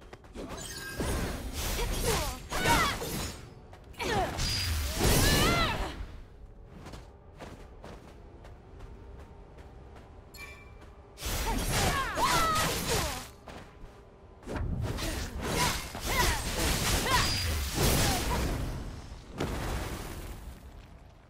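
Heavy blows strike with deep thuds.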